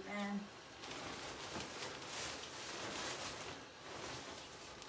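An inflatable decoration's fabric rustles as it is handled.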